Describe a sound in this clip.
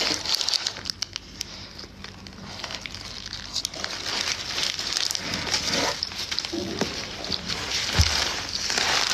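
A young woman chews and eats food close to a phone microphone.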